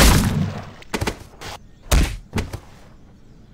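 A body thuds hard against a wall.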